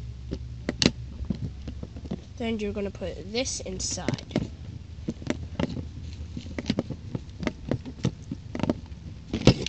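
Hard plastic clicks and knocks as a toy is handled close by.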